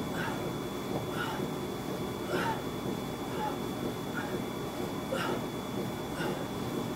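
A man breathes out sharply in short, regular puffs.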